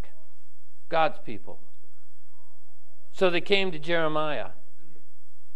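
An older man speaks slowly and clearly through a microphone in a large room.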